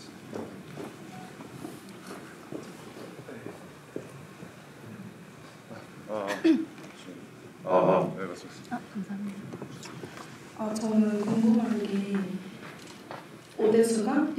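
A middle-aged man speaks calmly through a microphone.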